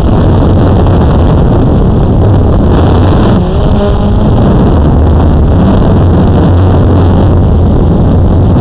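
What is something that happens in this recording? An RC drift car drives over asphalt.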